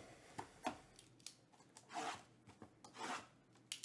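Plastic wrap crinkles and tears.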